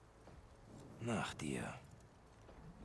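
A man speaks calmly and briefly.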